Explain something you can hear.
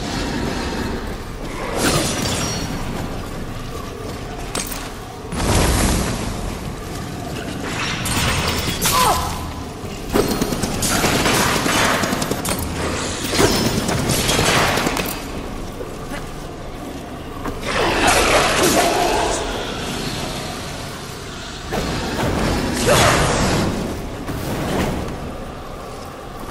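Heavy footsteps thud on a hard floor.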